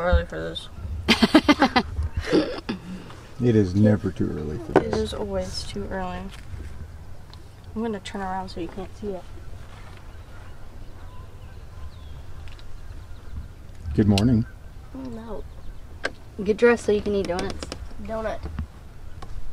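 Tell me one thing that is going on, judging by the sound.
A teenage girl talks and laughs close by.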